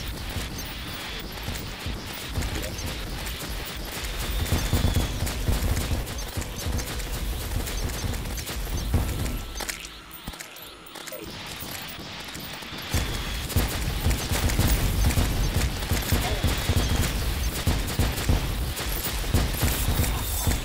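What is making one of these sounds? Rapid game sound effects of magic shots and hits crackle and pop.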